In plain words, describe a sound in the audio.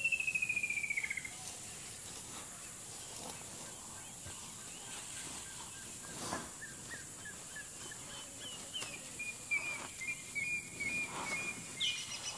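An elephant rustles and snaps leafy branches while feeding.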